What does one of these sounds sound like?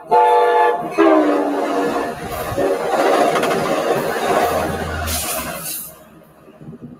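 A train rushes past close by with a loud roar.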